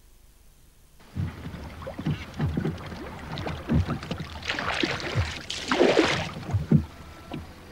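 A wooden oar splashes and swishes through water.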